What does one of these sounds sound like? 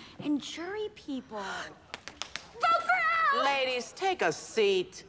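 A young woman shouts excitedly.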